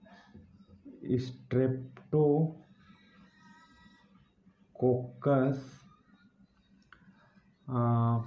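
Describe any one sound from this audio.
A man speaks calmly and slowly, close by.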